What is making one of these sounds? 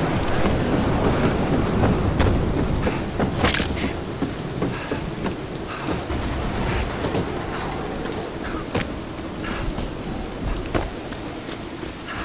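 Footsteps thud steadily.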